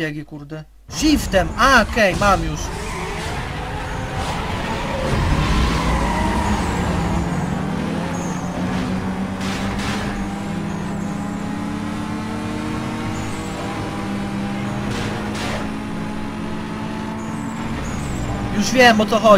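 A racing car engine revs hard and roars as it speeds up through the gears.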